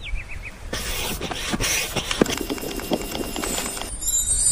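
A hand pump squeaks and puffs air in steady strokes.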